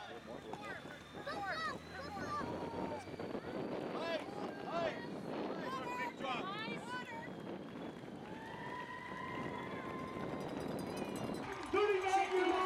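Men and women shout and cheer encouragement outdoors.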